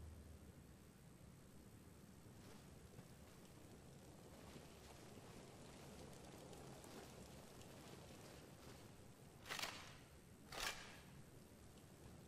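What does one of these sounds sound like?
Footsteps tread slowly on a stone floor in a large echoing room.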